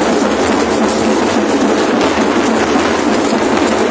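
A marching drum beats in a rhythm.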